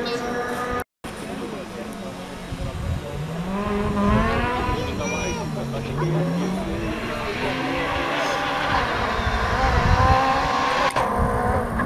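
A second rally car engine revs hard as the car approaches and passes.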